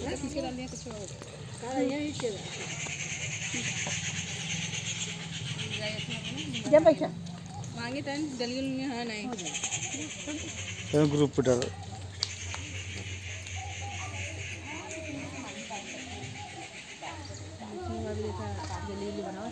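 Several women talk and chant together outdoors.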